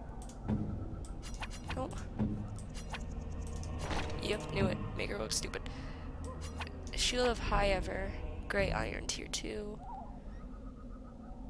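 Short interface clicks sound as items are selected.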